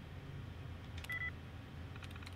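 A computer terminal gives a short beep.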